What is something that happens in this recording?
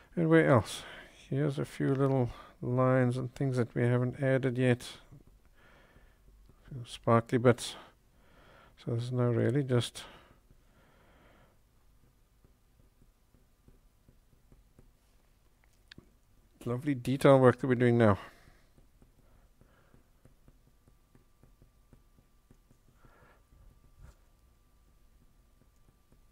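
A pencil scratches softly on paper.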